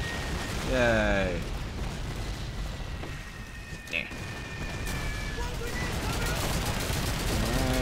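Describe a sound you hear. Shells explode with deep booming thuds nearby.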